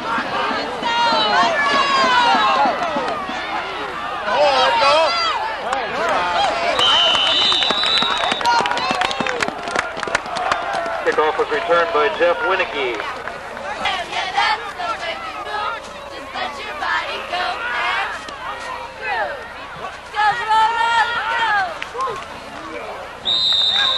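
A crowd of spectators cheers and shouts nearby outdoors.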